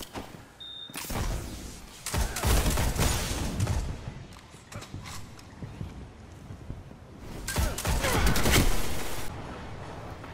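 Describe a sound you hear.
A sniper rifle fires with a loud crack and booming echo.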